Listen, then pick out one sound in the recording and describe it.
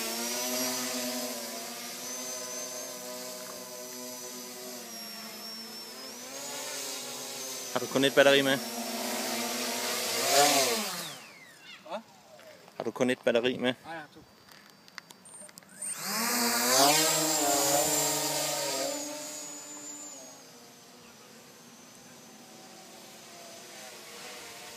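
A small drone's motors buzz loudly, rising and falling in pitch, then fade as the drone flies away.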